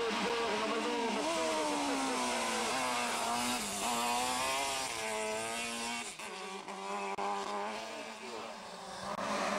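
A racing car engine roars close by, revving up and down through the gears.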